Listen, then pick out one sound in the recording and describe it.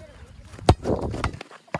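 A child kicks a football.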